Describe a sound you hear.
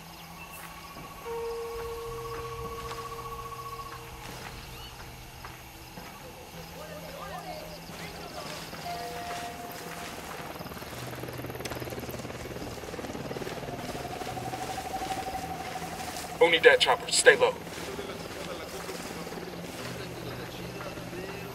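Leaves rustle as someone pushes through dense bushes.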